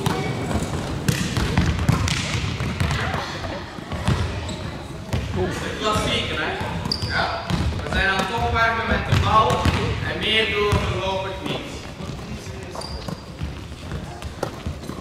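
A volleyball is struck with sharp thuds in a large echoing hall.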